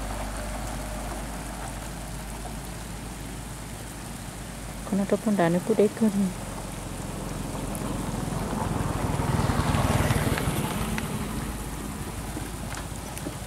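Wind blows across open ground and rumbles, growing stronger for a while.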